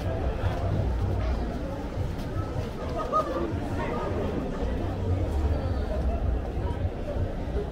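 Footsteps scuff on pavement close by.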